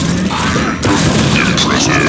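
A lightning gun buzzes as it fires.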